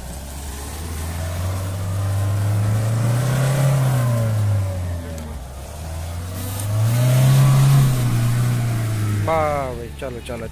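An off-road vehicle's engine revs hard, rising and falling twice.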